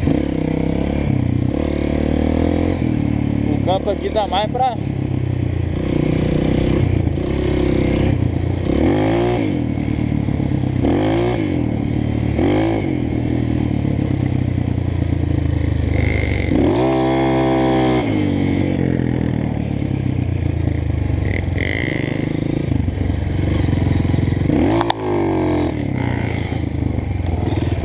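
A dirt bike engine buzzes loudly close by, revving up and down.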